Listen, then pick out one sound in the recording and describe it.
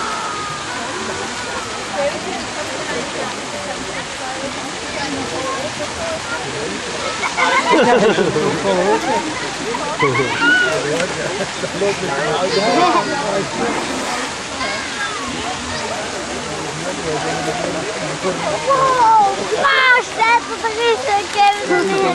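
A crowd of children and adults chatters and calls out nearby, outdoors.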